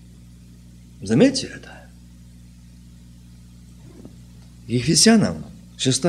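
A middle-aged man speaks slowly and calmly into a microphone, with long pauses.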